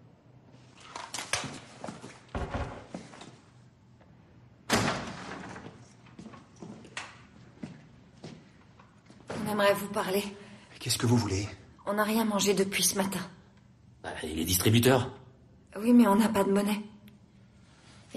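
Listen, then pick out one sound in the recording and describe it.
A young woman speaks tensely and close by.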